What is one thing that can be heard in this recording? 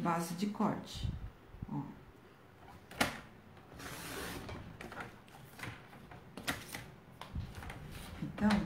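A paper trimmer blade slides and cuts through card.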